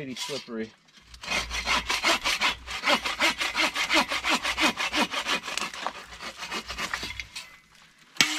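A hand saw cuts back and forth through a branch in quick strokes.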